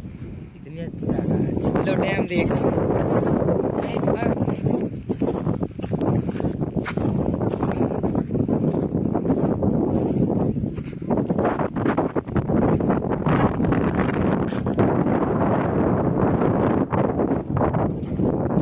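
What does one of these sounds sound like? Wind blows hard across the microphone outdoors.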